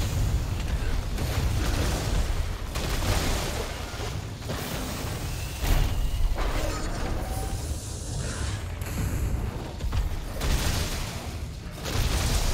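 A huge beast rumbles and stomps heavily.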